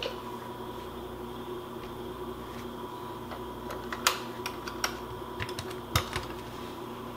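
A glass lid clinks down onto a metal pot.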